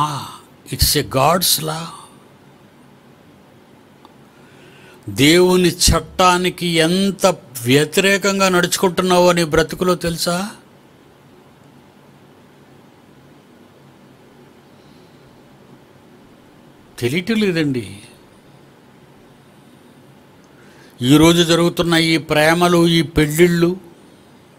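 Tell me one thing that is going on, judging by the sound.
An elderly man speaks with animation, close to a microphone, with pauses between phrases.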